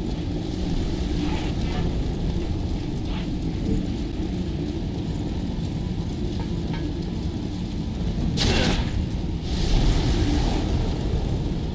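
Fire roars and crackles steadily.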